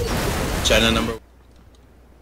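A loud explosion roars and crackles, then cuts off.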